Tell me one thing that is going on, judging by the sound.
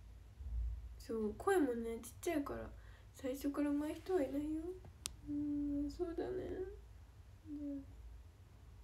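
A young woman speaks softly and close to the microphone.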